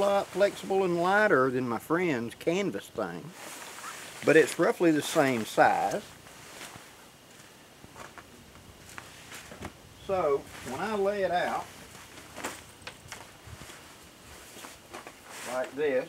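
An older man talks calmly and close by.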